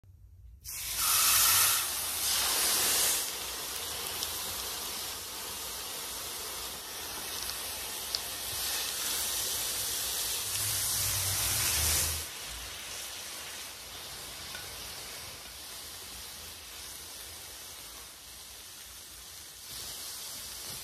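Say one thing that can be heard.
Meat sizzles loudly on a hot griddle.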